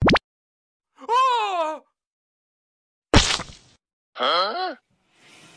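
A young boy exclaims in surprise close by.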